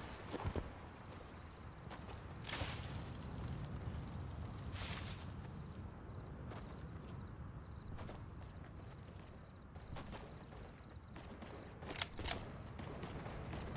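A game character's footsteps run.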